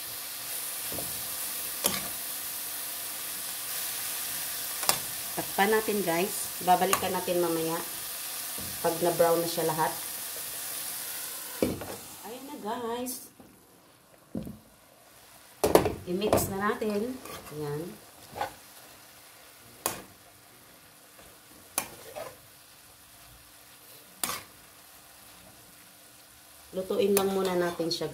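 A metal spoon scrapes and knocks against a pan.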